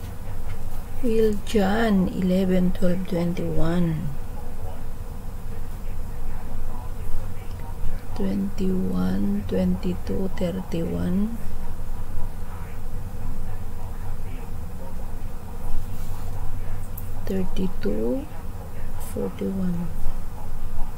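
A middle-aged woman speaks calmly in short bursts through a webcam microphone.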